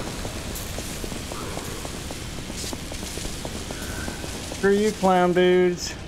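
Footsteps run across stone.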